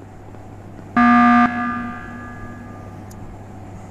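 A loud game alarm blares briefly and rings out.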